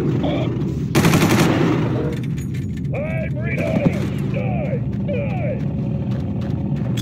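A gun fires loud shots in bursts.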